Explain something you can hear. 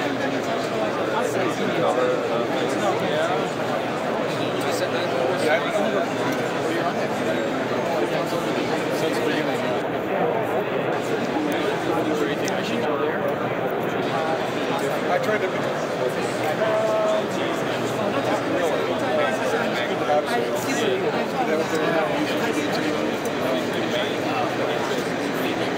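Many people chatter all around in a large, echoing hall.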